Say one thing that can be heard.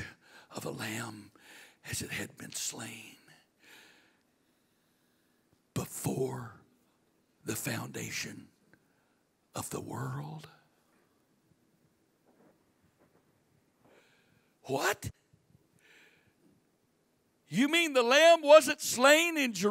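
A middle-aged man speaks with animation into a microphone, heard through a loudspeaker in a large room.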